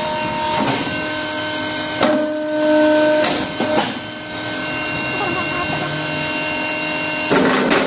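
A press thumps down loudly.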